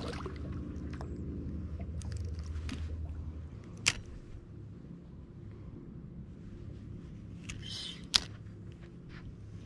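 A fishing reel clicks and whirs as it is wound.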